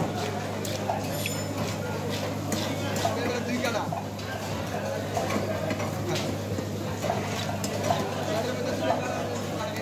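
A fixed curved blade slices through raw fish.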